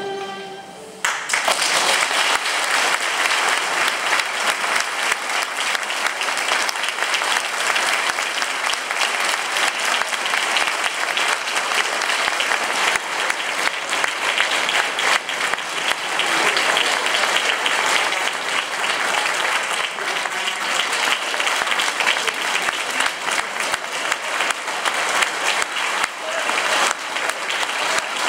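An audience applauds loudly and steadily in a large room.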